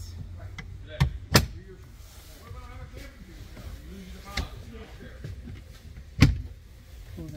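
A cabinet door clicks and thumps shut.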